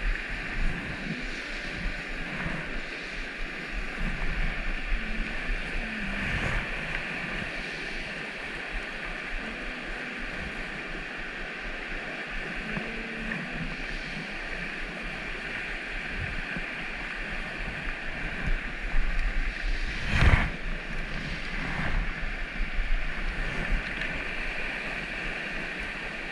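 A river rushes steadily over rocks nearby.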